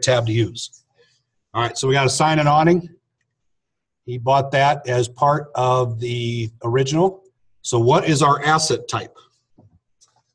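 A man speaks calmly and clearly into a microphone, close by.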